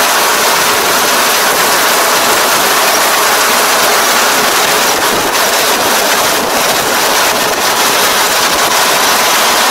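A combine harvester's engine roars steadily close by.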